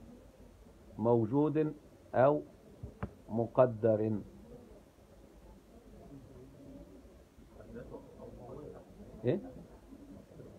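A man speaks close by in short bursts, calmly.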